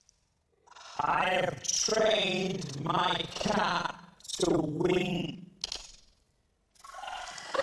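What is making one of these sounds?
A man reads out and speaks.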